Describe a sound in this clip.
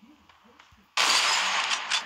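A game rifle fires a loud shot.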